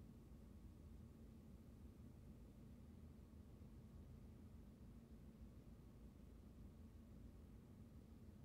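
A car engine idles with a low steady rumble, heard from inside the car.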